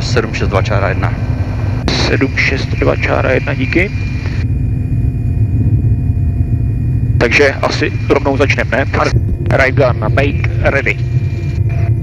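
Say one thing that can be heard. A man speaks over a headset intercom.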